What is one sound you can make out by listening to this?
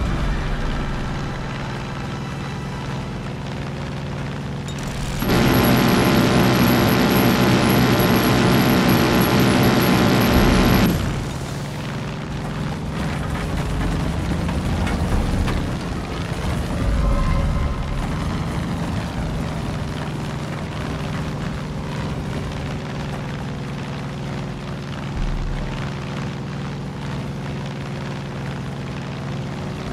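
A small propeller plane's engine drones steadily throughout.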